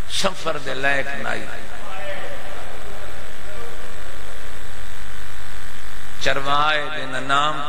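A man speaks forcefully and with passion into a microphone, his voice carried through a loudspeaker.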